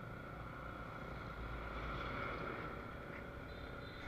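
A truck rumbles past nearby.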